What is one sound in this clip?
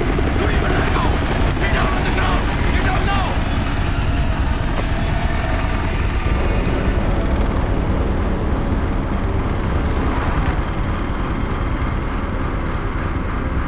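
Flames crackle in a burning barrel.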